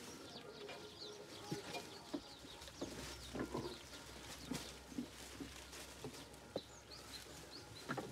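Dry straw rustles under a goat in labour as it shifts its legs.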